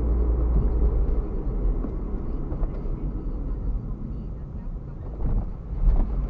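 A car engine hums low and steady from inside the car as it drives along.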